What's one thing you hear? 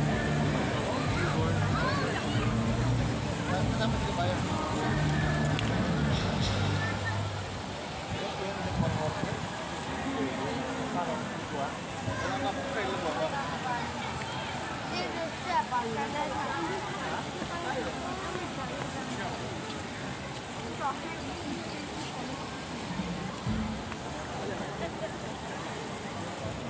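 A crowd of men and women chatter in the background.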